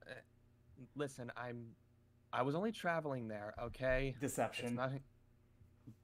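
A man speaks with animation over an online call.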